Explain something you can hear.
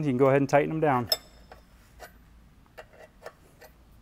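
A ratchet wrench clicks as a bolt is tightened.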